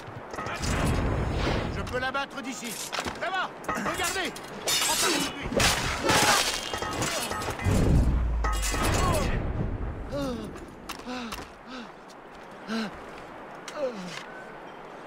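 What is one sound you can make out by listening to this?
A man grunts and shouts while fighting.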